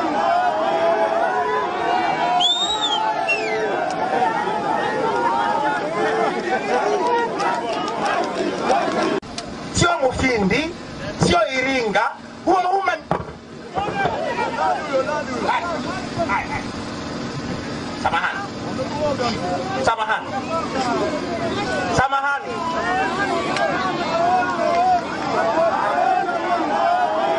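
A man speaks with animation into a microphone, heard through loudspeakers outdoors.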